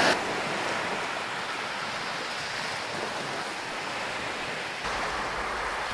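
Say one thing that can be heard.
Hot water pours into a cup.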